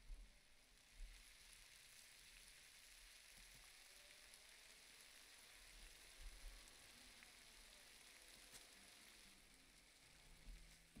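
A pot of water bubbles softly on a stove.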